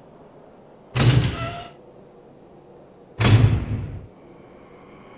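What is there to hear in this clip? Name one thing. A heavy metal double door swings open with a loud thud.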